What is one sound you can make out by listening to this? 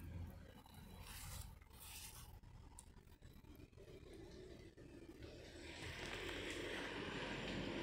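A cat's paws patter softly on concrete.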